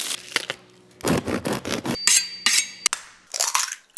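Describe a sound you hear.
A bread knife saws through a crusty loaf.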